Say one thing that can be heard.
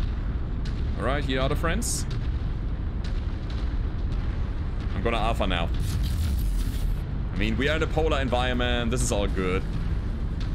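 A young man speaks into a close microphone in short, lively bursts.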